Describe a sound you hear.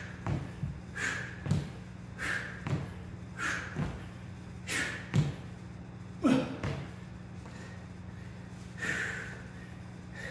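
A young man breathes out sharply and heavily in a rhythm.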